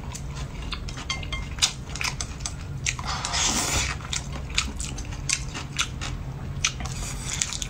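A man chews with wet smacking sounds.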